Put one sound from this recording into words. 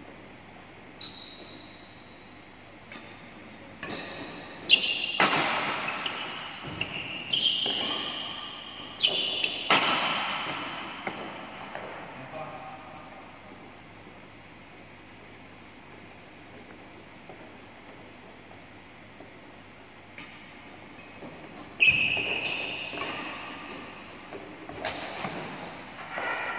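Rackets hit a shuttlecock with sharp pops in a large echoing hall.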